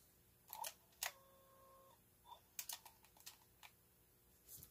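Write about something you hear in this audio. Buttons on a small cassette player click as they are pressed.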